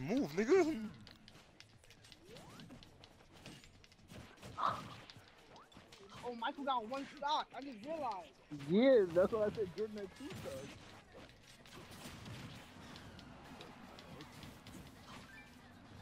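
Video game fighters trade quick whooshing and smacking blows.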